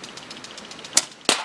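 A shot cracks sharply.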